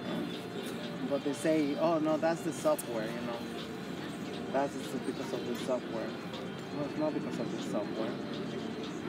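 An older woman speaks casually, close by.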